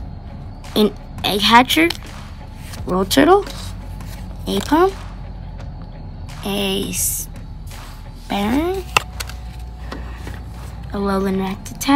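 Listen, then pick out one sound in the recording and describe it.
Playing cards rustle and slide softly against each other in hand.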